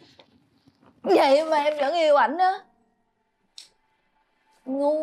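A young woman speaks in a distressed, pleading voice close by.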